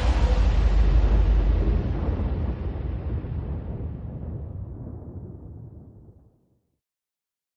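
Wind rushes loudly, then slowly fades away to silence.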